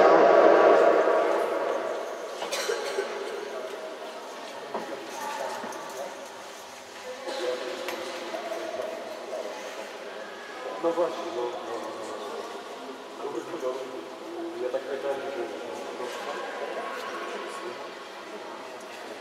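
Children and men chatter in a large echoing hall.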